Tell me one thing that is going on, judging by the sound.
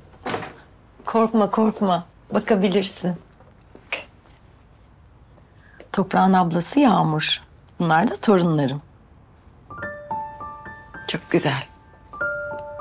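An older woman speaks warmly and cheerfully nearby.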